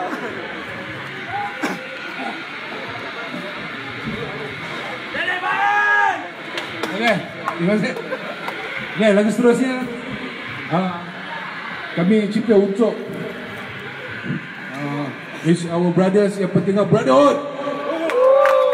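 A live rock band plays loudly through speakers outdoors.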